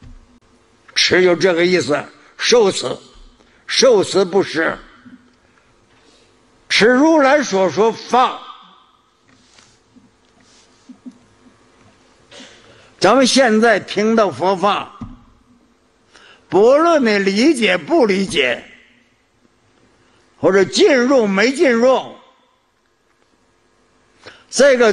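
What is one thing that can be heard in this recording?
An elderly man speaks slowly and deliberately through a microphone, in short phrases with long pauses.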